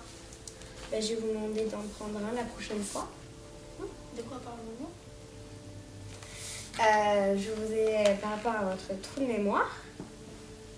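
Another young girl answers with animation nearby.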